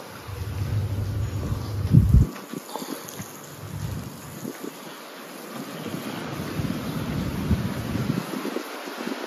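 Wind gusts outdoors, buffeting in low rumbles.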